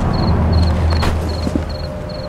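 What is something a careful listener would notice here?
A heavy thud sounds as a man lands from a jump.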